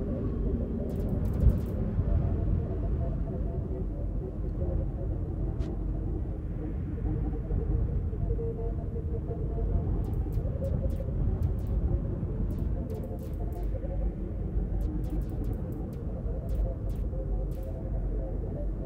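Soft electronic blips tick in quick bursts.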